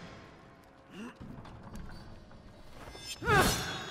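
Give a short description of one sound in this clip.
A metal lever creaks and clanks as it is pulled.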